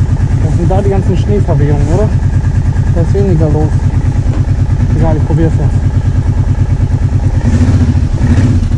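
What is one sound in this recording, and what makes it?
A quad bike engine rumbles steadily nearby.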